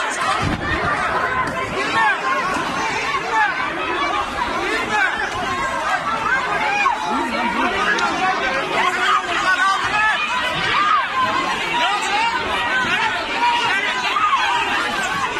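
A crowd of men and women shouts and chants loudly outdoors.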